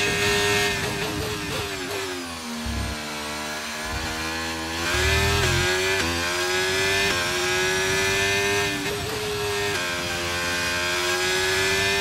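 A racing car engine screams at high revs, dropping in pitch while slowing and climbing again through quick gear shifts.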